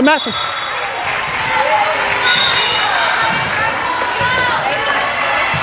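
Young women players call out to each other in an echoing gym.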